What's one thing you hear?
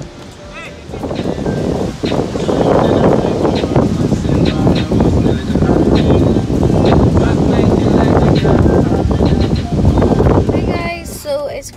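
Surf crashes and rushes on a shore in wind.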